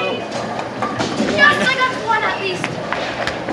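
A boy cheers excitedly.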